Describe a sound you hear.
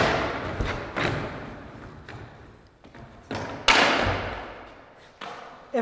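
Skateboard wheels roll and rumble on a hard floor.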